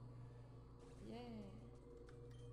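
A handheld video game sound effect warbles as a defeated monster faints.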